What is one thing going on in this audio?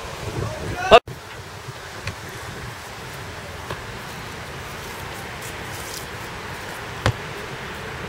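A football thuds as it is kicked and caught.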